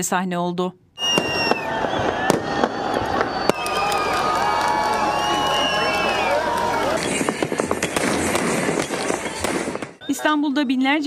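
Fireworks bang and crackle overhead.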